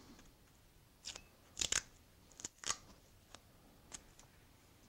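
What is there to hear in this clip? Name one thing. Masking tape peels and tears off a roll.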